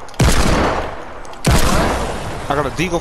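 A gun fires loud booming shots that ring out.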